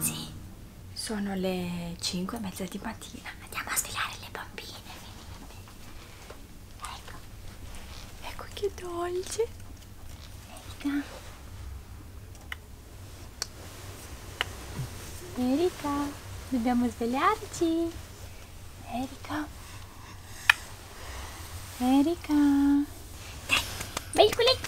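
A young woman talks close by, softly and playfully.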